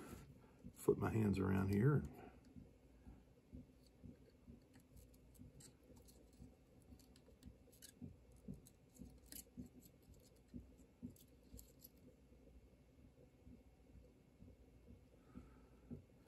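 Small metal parts tick and click softly as they are handled.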